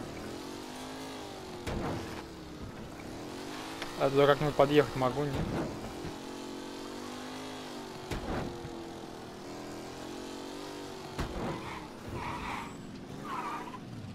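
Car tyres roll over a rough road.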